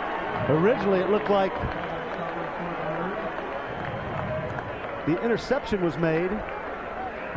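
A crowd cheers in a large open stadium.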